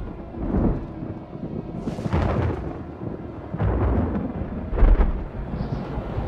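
Thunder rumbles in bursts.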